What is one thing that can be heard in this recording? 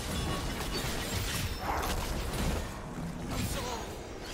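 Fantasy combat effects crackle and burst as spells clash.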